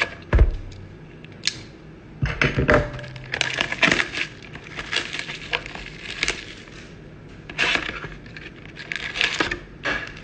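A cardboard box scrapes and rustles as hands handle it.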